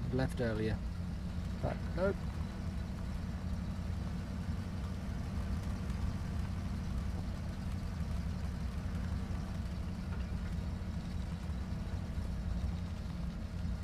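A heavy truck engine rumbles steadily at low speed.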